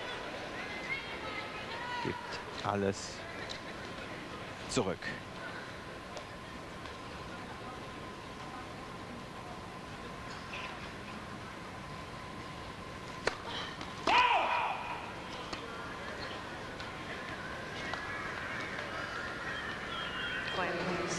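A crowd murmurs softly in a large hall.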